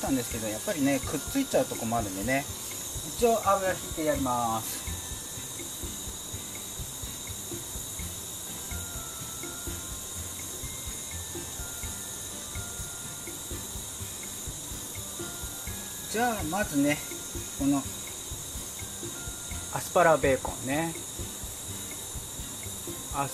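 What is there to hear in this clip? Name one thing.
Oil sizzles softly on a hot griddle.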